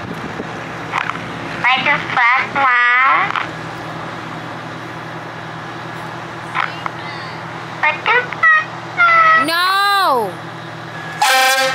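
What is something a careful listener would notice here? A fire truck engine idles steadily nearby.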